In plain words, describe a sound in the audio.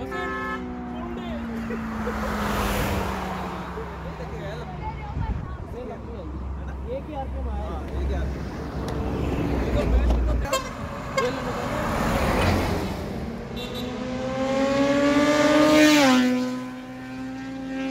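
Vehicles rush past close by on a road, one after another.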